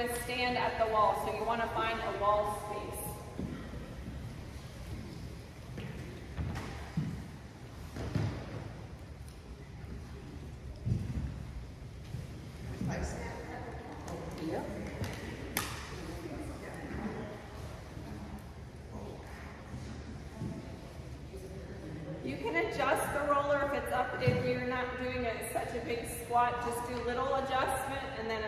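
A woman speaks with animation in a room with a slight echo.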